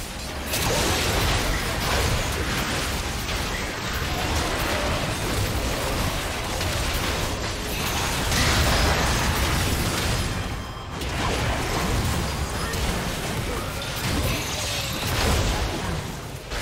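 Magic spells burst and crackle in a busy video game battle.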